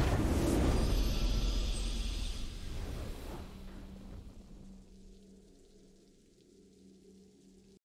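A triumphant victory fanfare plays and slowly fades.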